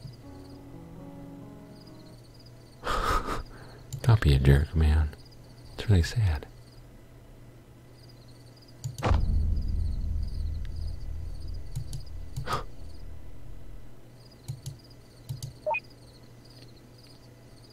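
Soft, quick electronic blips tick in a steady run.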